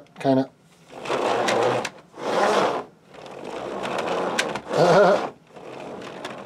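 Small wooden wheels roll across a mat.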